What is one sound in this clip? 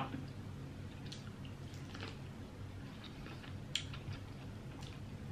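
Food crackles and rustles in a woman's fingers.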